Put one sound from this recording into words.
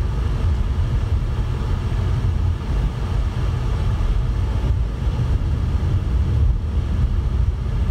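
A car's engine and tyres rumble steadily on a highway.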